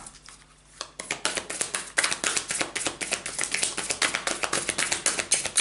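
Playing cards riffle and flick rapidly as they are shuffled.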